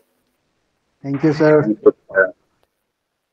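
A second man speaks a few words over an online call.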